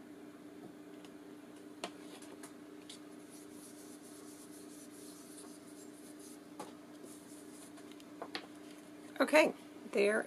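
Paper rustles as hands rub and press a card.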